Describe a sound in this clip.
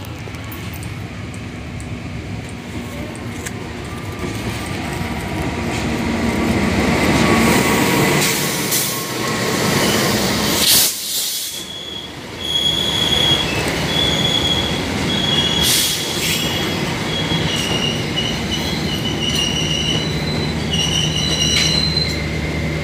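A train engine rumbles as it approaches and rolls past close by.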